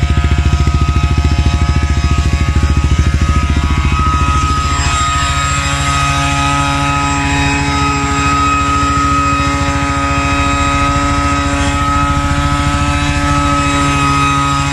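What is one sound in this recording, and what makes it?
A quad bike engine throbs loudly and then settles to a steady idle.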